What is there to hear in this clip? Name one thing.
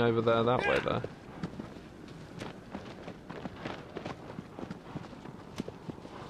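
A horse gallops, hooves thudding steadily on grass.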